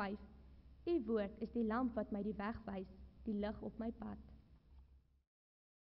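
A young woman reads out calmly through a microphone in an echoing hall.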